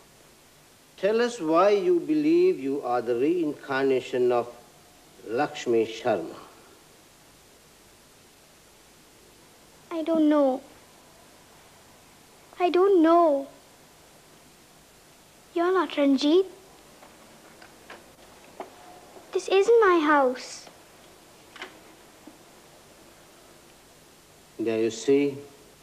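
A man speaks sternly, asking questions.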